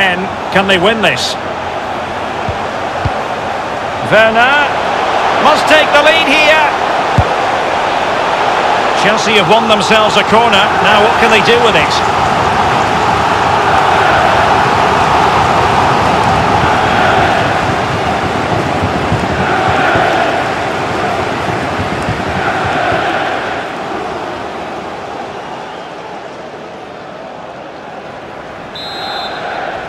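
A large stadium crowd roars and cheers, swelling and then slowly fading.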